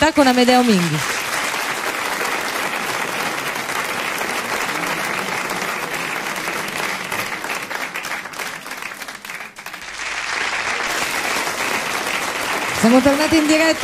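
A large crowd applauds and cheers in a big hall.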